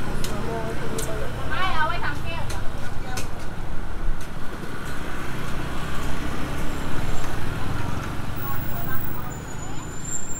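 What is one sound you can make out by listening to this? Footsteps tap on pavement close by.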